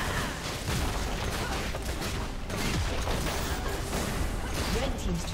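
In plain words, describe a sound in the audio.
Game spell effects crackle and burst during a fight.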